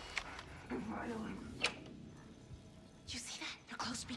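A door opens with a creak.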